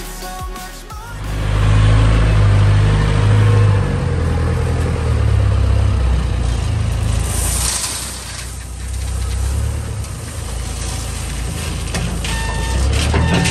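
A diesel engine rumbles and revs nearby.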